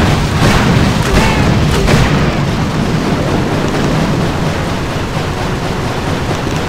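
Gunfire rattles.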